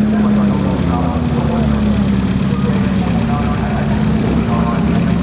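A crowd of people chatters outdoors in the background.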